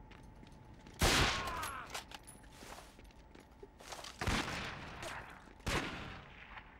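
A rifle fires loud shots that echo.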